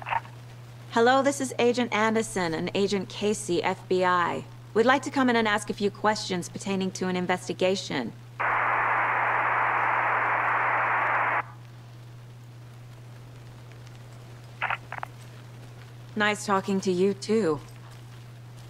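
A young woman speaks calmly into an intercom, close by.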